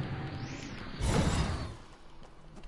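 A character lands on the ground with a thud.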